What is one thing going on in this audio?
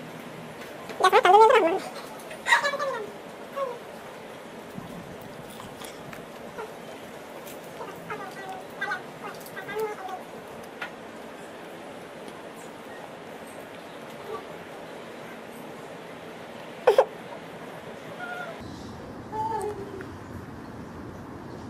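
A young girl talks quietly close by.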